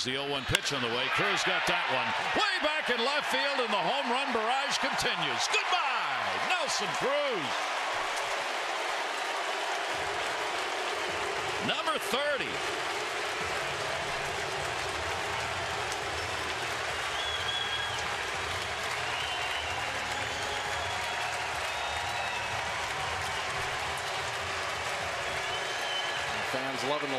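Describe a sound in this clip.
A large crowd cheers and roars loudly outdoors.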